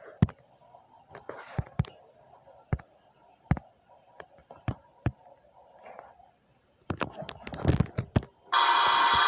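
Soft clicks tap at irregular intervals.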